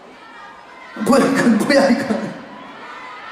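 A crowd screams and cheers.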